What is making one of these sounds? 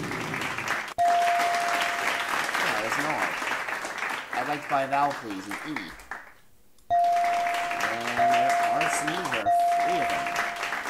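A bright chime rings as letters are revealed.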